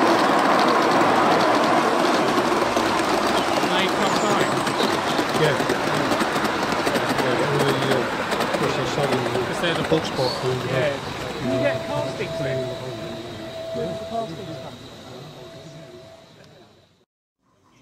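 A model train rumbles and clatters along its rails, then fades into the distance.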